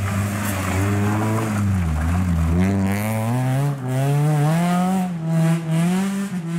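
A rally car engine revs hard close by, its pitch rising and falling through the gears.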